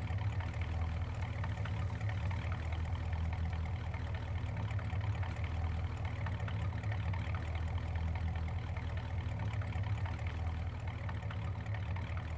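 A vehicle engine idles with a low steady rumble.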